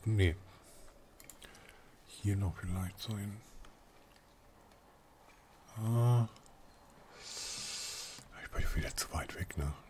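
A young man speaks in short phrases into a microphone close by.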